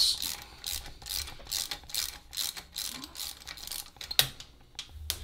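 A ratchet wrench clicks rapidly as it turns a bolt.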